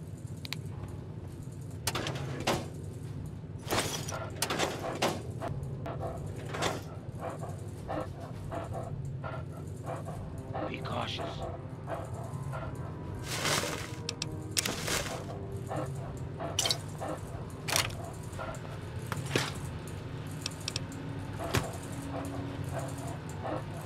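Short clicks and clatters sound as items are picked up and containers are opened.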